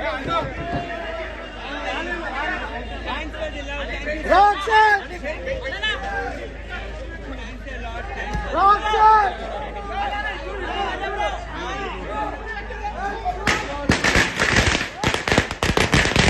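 A crowd of young men and women cheer and shout excitedly close by.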